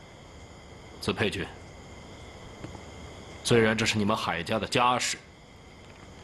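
A middle-aged man speaks in a low, serious voice.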